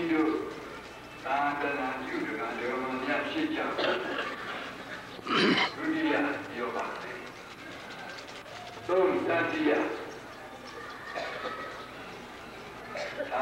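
Many men's voices chant together in a low drone.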